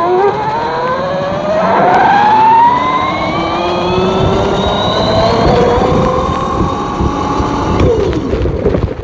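An electric motor whines, rising in pitch as it speeds up.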